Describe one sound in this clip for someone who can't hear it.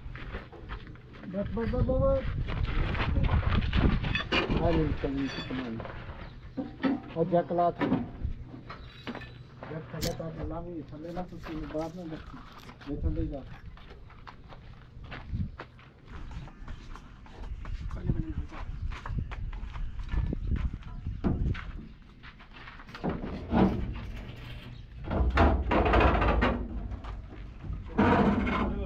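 Metal panels clank and rattle as they are handled.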